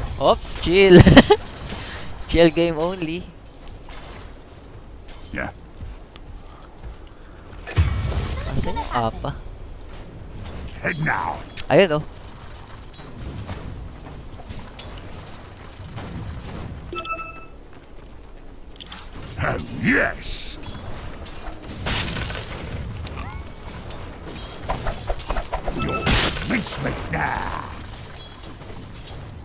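Weapons clash and magic effects burst in short, sharp bursts.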